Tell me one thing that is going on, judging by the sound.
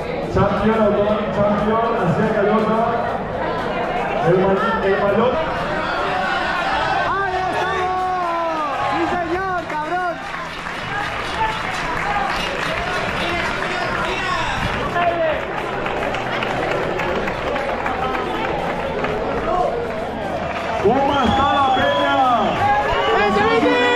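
A man announces loudly over a loudspeaker, echoing outdoors.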